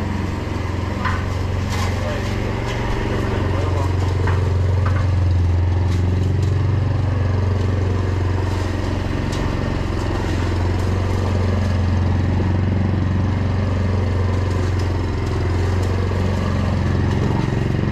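A petrol lawn mower engine drones steadily nearby.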